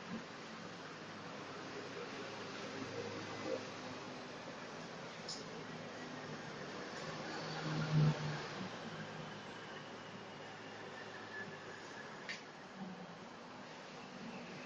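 Feet shuffle and squeak on a hard floor.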